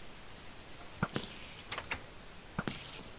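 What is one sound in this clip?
A block is placed with a dull knock.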